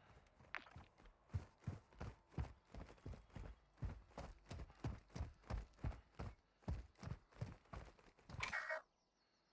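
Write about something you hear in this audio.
Footsteps run quickly over hard dirt.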